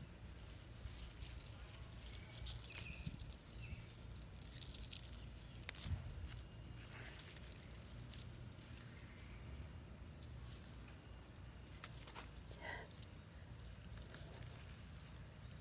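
Pea plant leaves rustle as a hand reaches among them.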